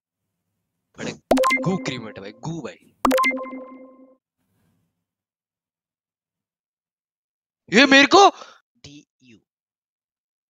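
A young man speaks with animation into a microphone, close by.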